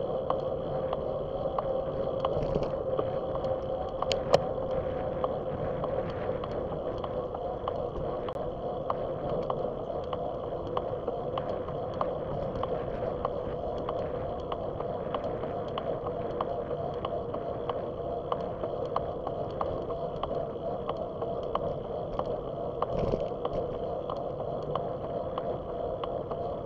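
Bicycle tyres hum on the road surface.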